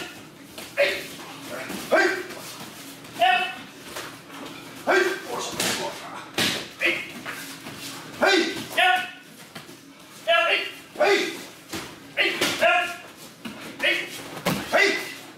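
Young men shout sharply again and again.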